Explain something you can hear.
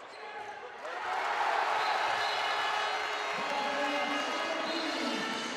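A crowd in a large echoing hall cheers and roars loudly.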